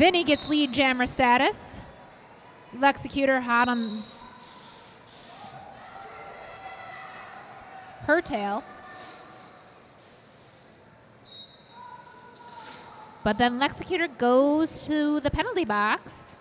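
Roller skate wheels roll and rumble across a hard floor in a large echoing hall.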